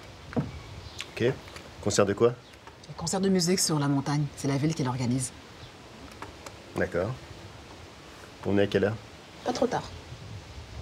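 A man answers calmly from close by.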